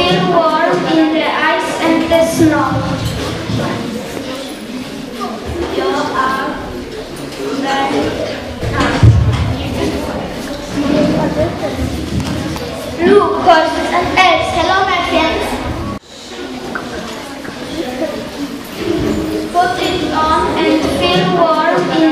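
Children sing together into a microphone in an echoing hall.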